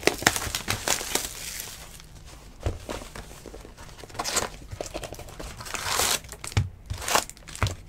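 Cardboard and plastic wrappers rustle and crinkle as hands handle them.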